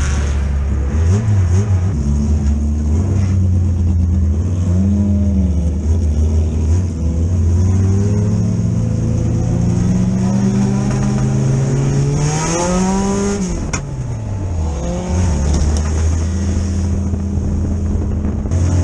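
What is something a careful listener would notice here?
A race car engine roars and revs up and down, heard from inside the car.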